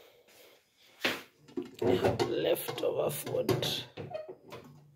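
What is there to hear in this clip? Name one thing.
A metal lid clatters against a pot.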